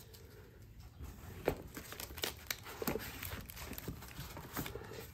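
Cardboard rustles and scrapes.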